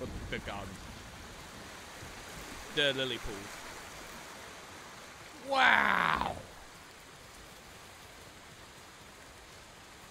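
Water splashes as someone wades through a shallow pond.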